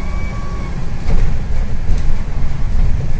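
A bus door rattles and thumps as it opens.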